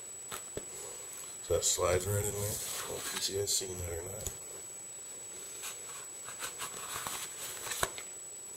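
Duct tape crinkles and rustles.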